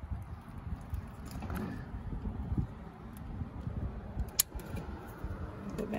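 A plastic bulb socket clicks and scrapes as it is twisted.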